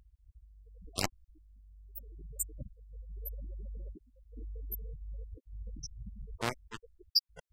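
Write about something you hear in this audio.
A man speaks quietly at a distance in a room.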